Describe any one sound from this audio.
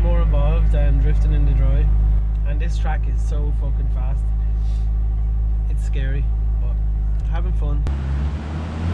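A man talks calmly.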